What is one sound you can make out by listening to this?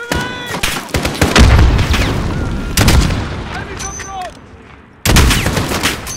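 Rifle shots boom loudly, echoing outdoors.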